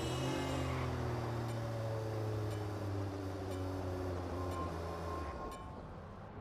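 A car engine hums steadily while driving, then cuts off.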